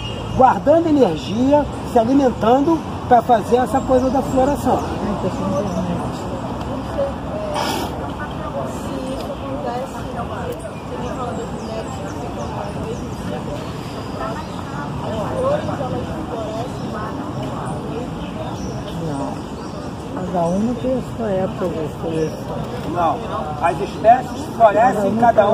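A middle-aged man talks with animation, close by, outdoors.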